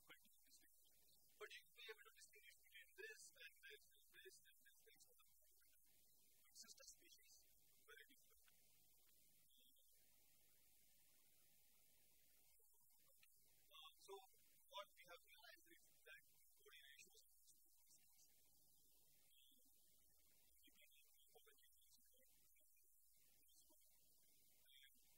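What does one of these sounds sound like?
A man speaks calmly to an audience, with pauses between phrases.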